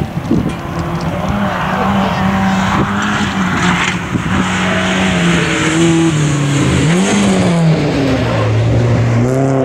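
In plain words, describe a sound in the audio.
A second rally car engine roars closer and revs past.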